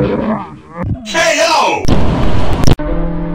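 A monster lets out a loud, harsh shriek.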